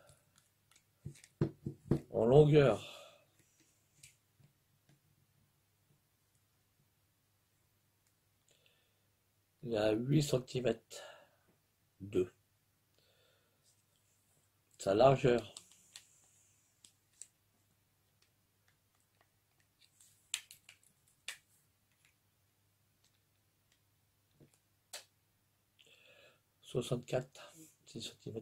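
A middle-aged man speaks calmly close to the microphone, in short bursts with pauses.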